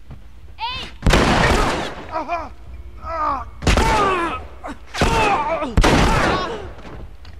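Pistol shots ring out loudly.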